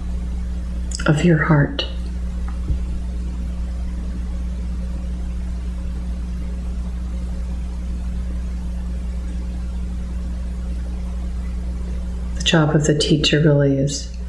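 A middle-aged woman speaks calmly and briefly, close by.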